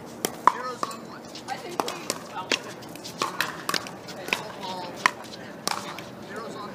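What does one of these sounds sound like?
Pickleball paddles hit a plastic ball back and forth outdoors.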